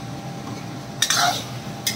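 A metal spatula scrapes against a wok.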